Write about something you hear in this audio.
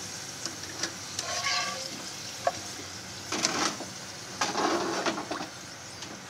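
A metal skimmer scrapes against a pan.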